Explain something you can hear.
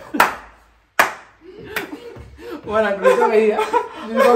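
Young men laugh loudly.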